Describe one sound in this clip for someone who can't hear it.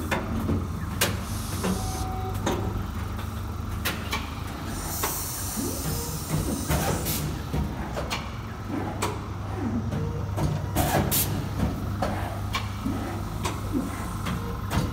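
A large machine hums and whirs steadily.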